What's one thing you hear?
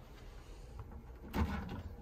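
A small fridge door clicks open.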